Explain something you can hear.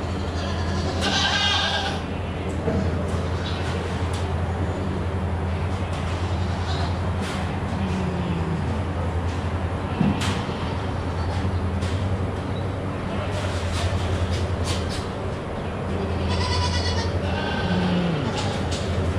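Goats bleat from their pens.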